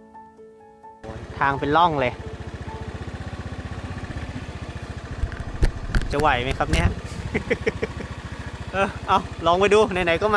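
A motorcycle engine putters steadily.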